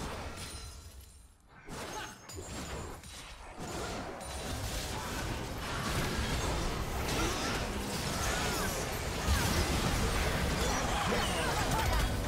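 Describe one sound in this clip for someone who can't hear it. Game spells and weapons clash and blast in a busy fight.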